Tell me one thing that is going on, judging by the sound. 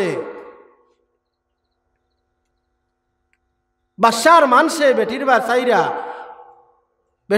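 A man preaches with fervour into a microphone, heard through loudspeakers with echo.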